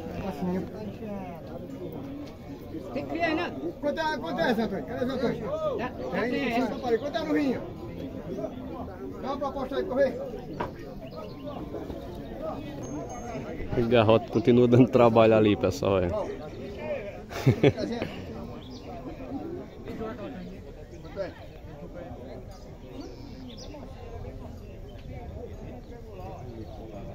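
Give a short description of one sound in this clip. Men talk outdoors, close by.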